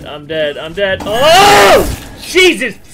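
A young man screams loudly into a close microphone.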